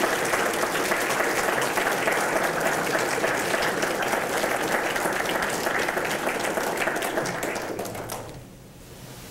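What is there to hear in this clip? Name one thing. An audience applauds loudly in a large room.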